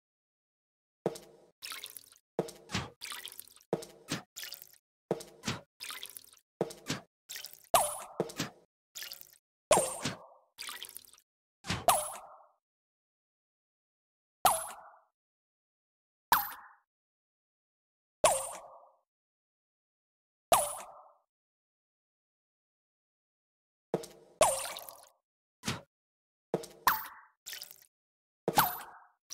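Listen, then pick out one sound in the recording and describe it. Water splashes in short, quick bursts from a watering can.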